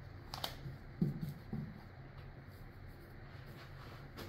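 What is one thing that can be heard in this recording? A painting board is set down on a table with a soft knock.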